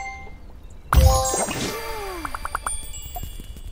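A game jingle plays with a sparkling chime as a building is finished.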